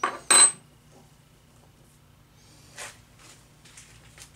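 A wrench clanks against metal parts.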